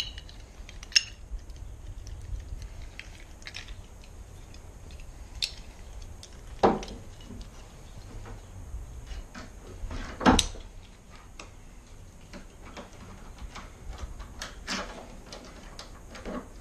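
A screwdriver scrapes and knocks against a door latch.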